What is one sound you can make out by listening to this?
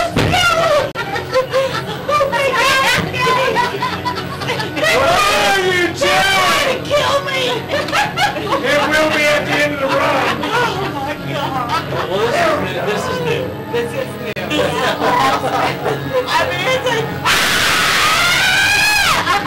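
Young women talk excitedly close by.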